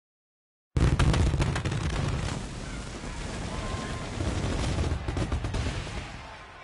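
Fireworks burst and crackle with sharp bangs.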